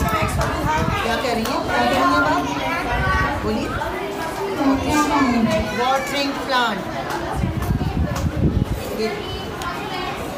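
A young child speaks into a microphone nearby.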